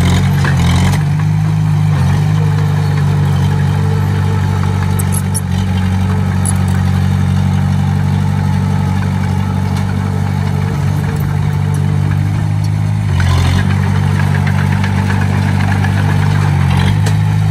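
Metal tracks clank and squeak as a small bulldozer moves.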